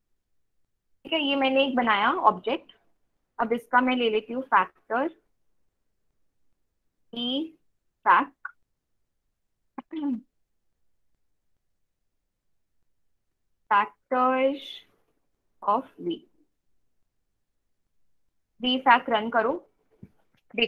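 A young woman speaks calmly into a microphone, heard close up, in short phrases with pauses.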